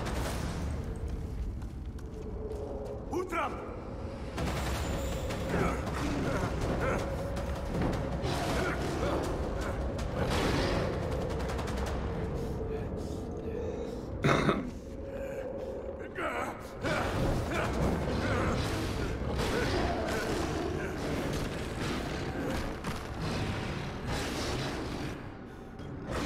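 A big cat snarls and growls.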